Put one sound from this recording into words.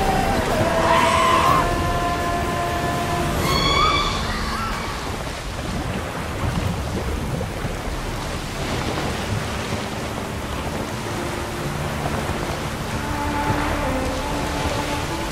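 Rough waves splash and crash against a small boat.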